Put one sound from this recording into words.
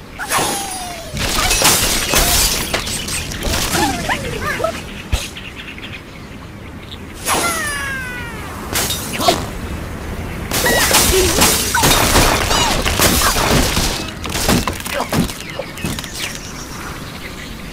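Wooden blocks crash and clatter as a structure collapses.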